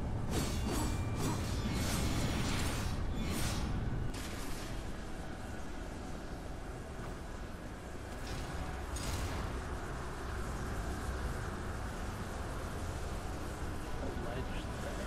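Game sound effects whoosh and rumble.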